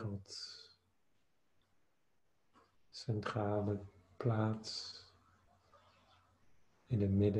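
A man speaks slowly and calmly in long drawn-out tones over an online call.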